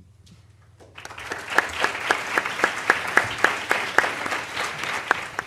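An audience claps in a rhythmic, even beat.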